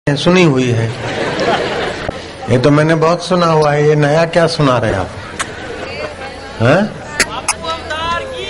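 An elderly man sings and chants through a microphone, amplified over loudspeakers.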